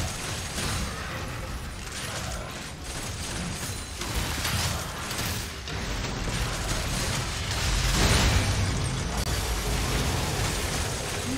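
Video game combat sounds crackle and clash throughout.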